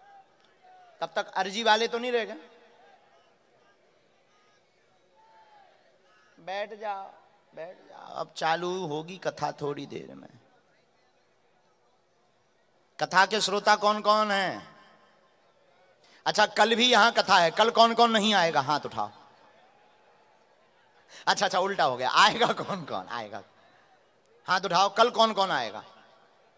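A young man sings in short phrases through a loudspeaker, with pauses between them.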